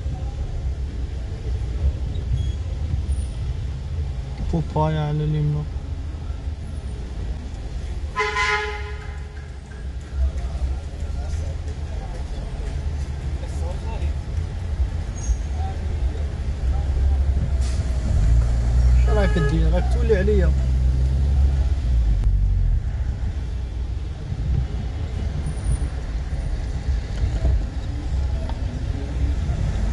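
A car engine hums low and steadily from inside the car.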